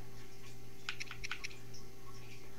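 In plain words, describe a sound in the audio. Short electronic menu blips tick as a selection moves along.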